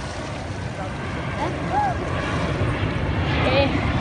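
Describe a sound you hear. Water splashes as children swim in a pool.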